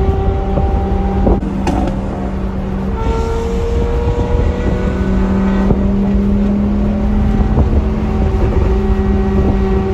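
A car engine drones steadily with a low, loud hum from inside the car.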